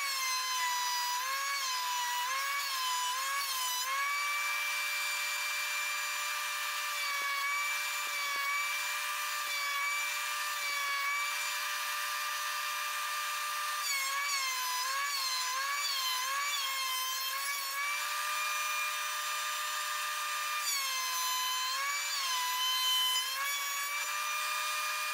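A planer blade cuts into wood and the motor's pitch dips.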